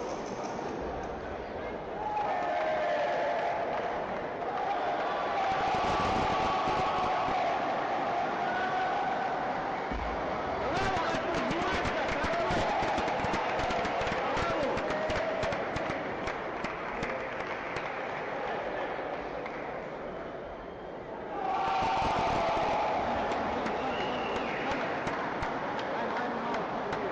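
Many voices murmur in a large echoing hall.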